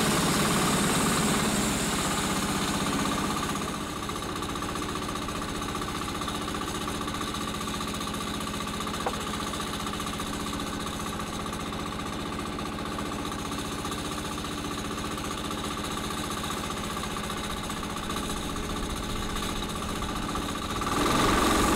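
An engine runs with a steady drone.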